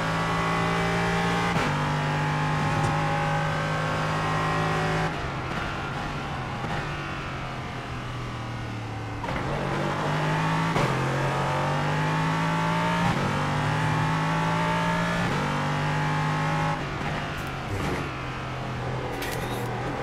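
A racing car engine roars, rising in pitch through the gears and dropping when it slows for corners.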